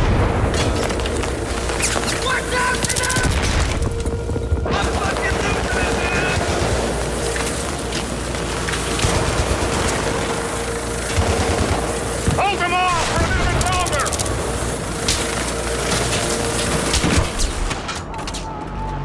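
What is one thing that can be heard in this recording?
Rifle shots fire in rapid bursts close by.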